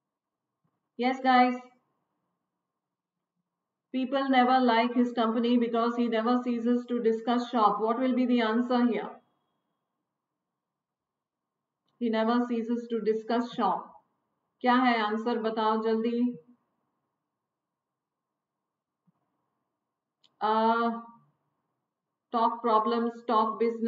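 A middle-aged woman speaks calmly and clearly into a close microphone, with pauses.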